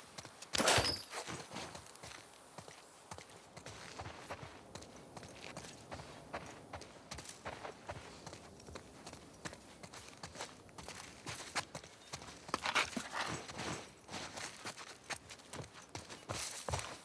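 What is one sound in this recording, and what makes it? Footsteps shuffle and tap across a hard floor.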